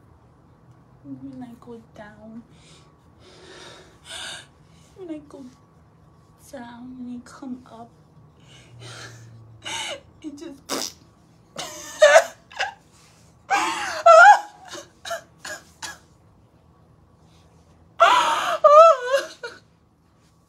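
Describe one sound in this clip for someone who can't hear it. A young woman talks close by with emotion.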